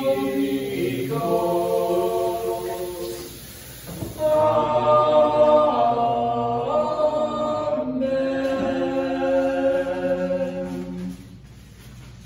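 A group of young men sing together in harmony, close by.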